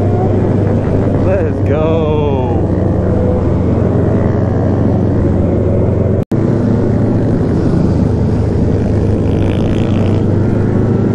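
A motorcycle engine roars loudly close by, revving up and down.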